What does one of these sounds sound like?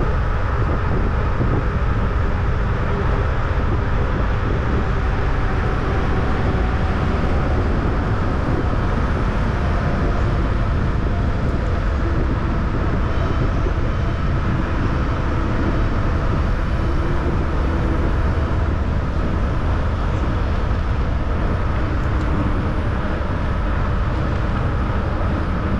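Wind rushes and buffets loudly past a moving bicycle.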